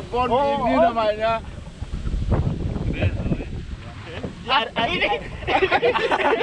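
Water churns and splashes behind a moving boat.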